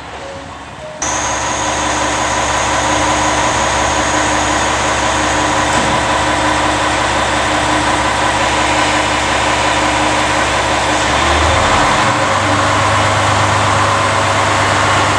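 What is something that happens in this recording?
A diesel train engine idles nearby with a steady rumble and hum.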